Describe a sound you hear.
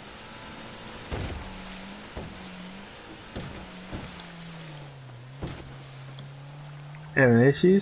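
Waves splash and rush around a boat.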